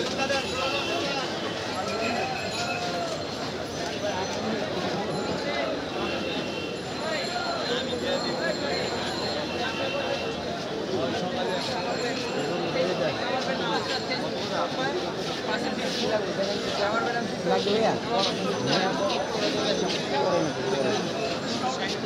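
A crowd of men chatter all around outdoors.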